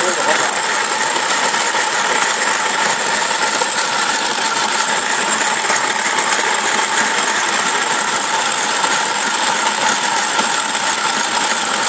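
A hand coffee grinder crunches beans with a gritty rasp.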